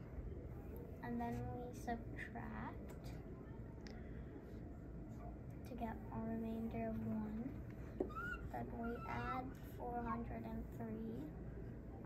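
A young boy speaks calmly nearby.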